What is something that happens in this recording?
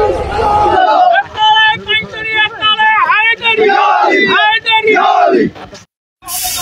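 A man shouts slogans with animation close by.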